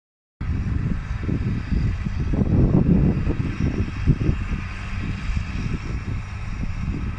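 A tractor engine rumbles in the distance.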